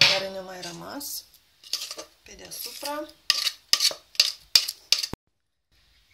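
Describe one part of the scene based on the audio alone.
A spoon scrapes thick cream in a metal bowl.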